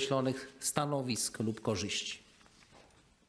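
A middle-aged man speaks calmly into a microphone in a large echoing hall.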